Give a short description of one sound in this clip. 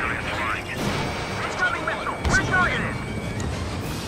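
Missiles whoosh away.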